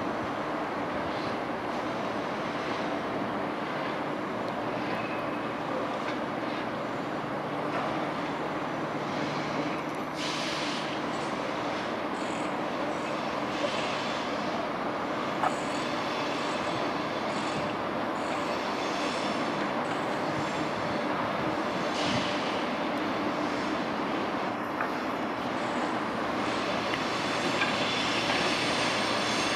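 An electric multiple-unit train rumbles along the rails at a distance, approaching.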